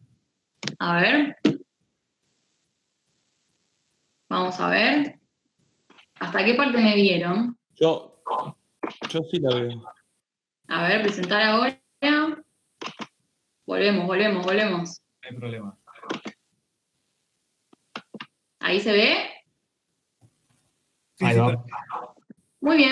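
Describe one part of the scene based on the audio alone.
A young woman speaks calmly over an online call, in short bursts with pauses.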